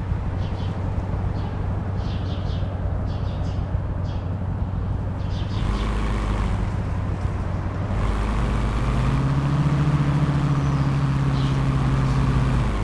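A car engine hums steadily, then revs higher.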